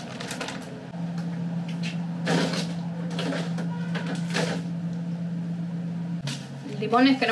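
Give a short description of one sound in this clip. A refrigerator hums steadily.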